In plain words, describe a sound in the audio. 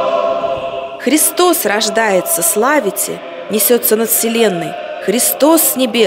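An elderly man speaks loudly in an echoing hall.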